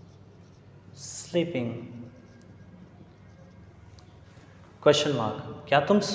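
A man speaks calmly, explaining in short phrases.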